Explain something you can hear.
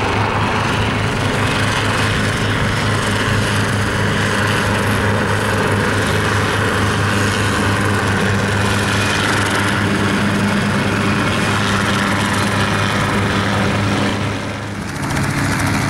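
A helicopter's engine drones and its rotor chops steadily nearby.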